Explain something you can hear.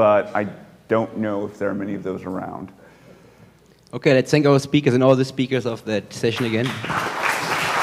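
A young man speaks calmly into a microphone in a large hall.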